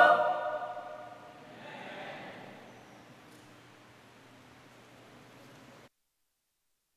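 A choir holds a last sung chord that rings out and fades in a large echoing hall.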